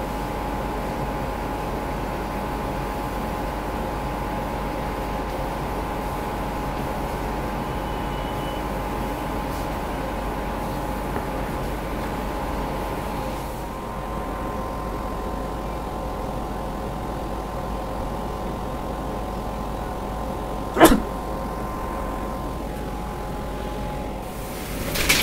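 A laser cutter hums steadily.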